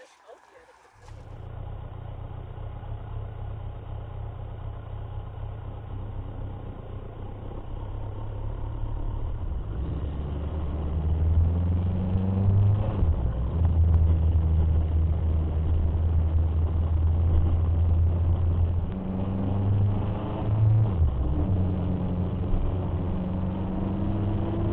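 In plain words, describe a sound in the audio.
A motorcycle engine rumbles close by, revving up and settling as it rides.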